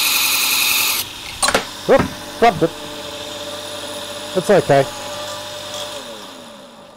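A belt grinder motor hums and winds down.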